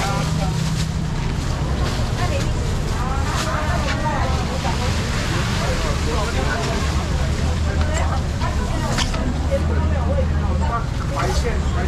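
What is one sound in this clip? Plastic bags rustle as fish are packed.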